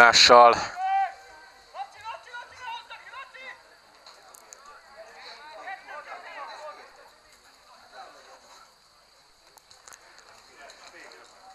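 Football players shout to each other far off across an open field.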